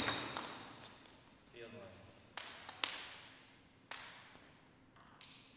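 A table tennis ball clicks sharply on paddles and the table in a large echoing hall.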